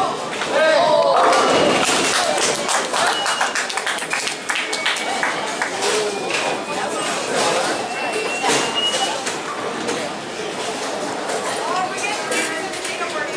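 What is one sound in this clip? Balls rumble and pins clatter on other lanes in a large echoing hall.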